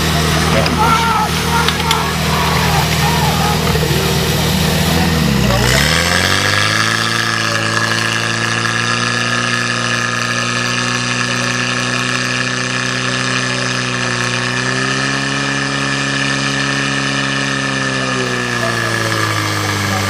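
A fire pump engine roars steadily and revs up sharply.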